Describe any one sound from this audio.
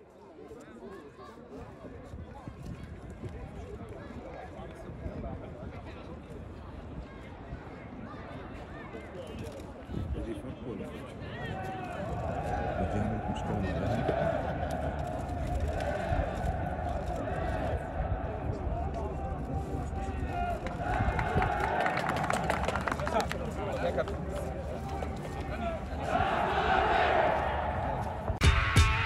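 Adult men talk casually nearby.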